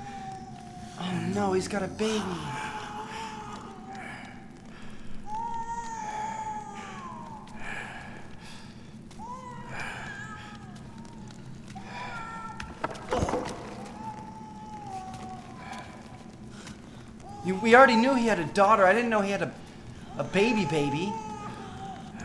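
A man shouts and growls.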